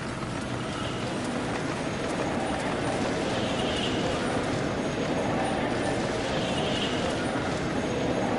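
A magical portal hums and swirls with a steady whooshing drone.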